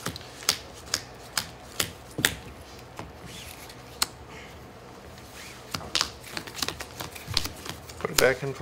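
Playing cards tap and slide on a soft mat.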